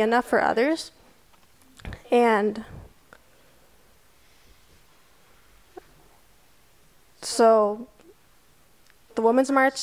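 A young woman speaks into a microphone, in short phrases with long pauses.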